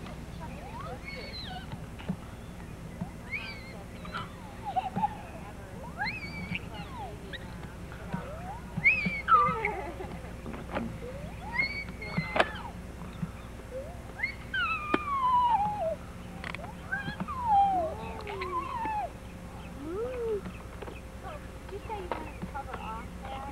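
A young girl talks in a high voice close by.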